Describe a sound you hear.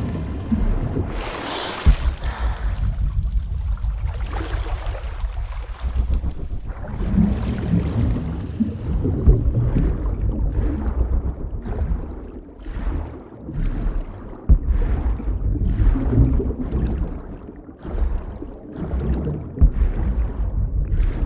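Water rumbles and swirls in a low, muffled underwater drone.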